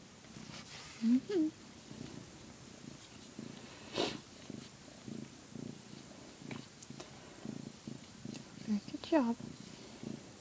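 Newborn kittens squeak with short rising cries.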